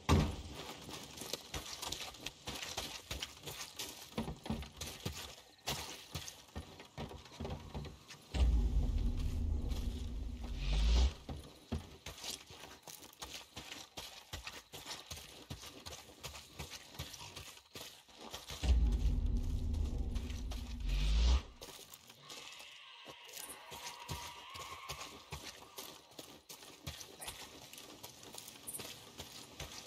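Footsteps crunch over gravel and dry grass.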